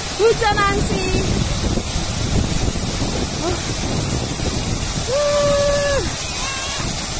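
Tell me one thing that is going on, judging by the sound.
Fountain jets of water spray and splash steadily.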